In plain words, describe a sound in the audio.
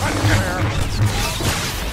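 Blaster shots fire in rapid bursts.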